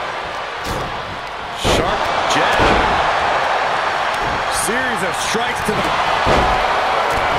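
Bodies thud heavily onto a ring canvas.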